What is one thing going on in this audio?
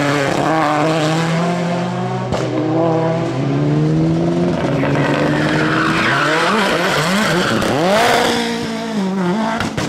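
Tyres squeal on the road as a car drifts around a corner.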